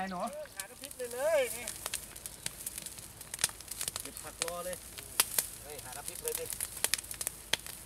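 Dry grass crackles as it burns.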